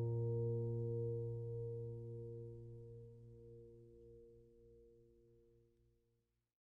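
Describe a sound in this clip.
An acoustic guitar's last chord rings out and slowly fades away.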